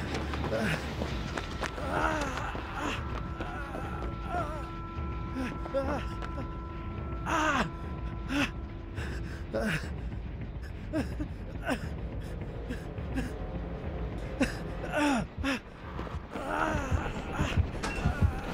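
Footsteps run across wooden boards.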